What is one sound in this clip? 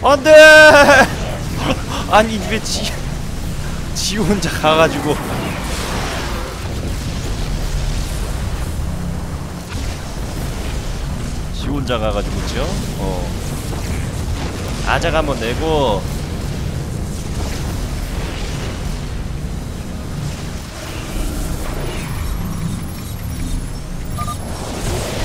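Energy beams fire and crackle in a loud battle.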